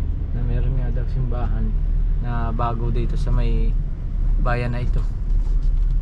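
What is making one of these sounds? A man speaks close by, calmly.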